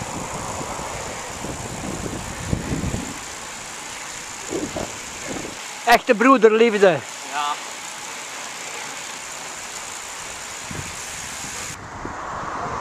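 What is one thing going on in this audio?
Bicycles roll along a road.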